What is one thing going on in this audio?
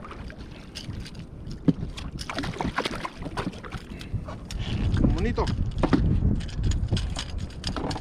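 Water laps against a boat.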